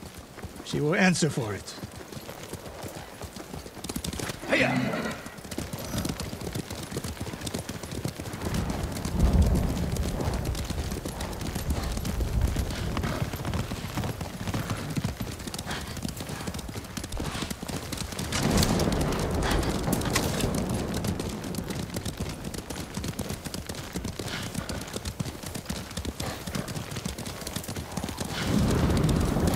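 Horses gallop steadily on a dirt path.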